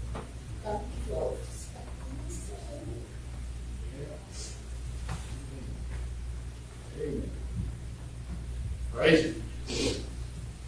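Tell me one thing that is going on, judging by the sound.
Men and women murmur and talk quietly at a distance in an echoing hall.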